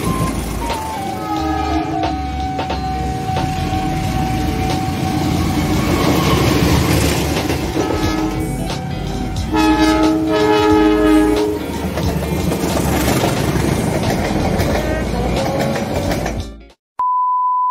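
A train rumbles loudly past on the tracks.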